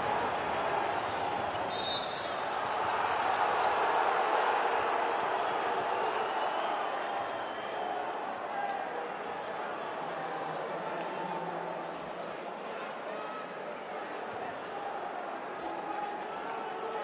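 A crowd cheers and chatters throughout a large echoing arena.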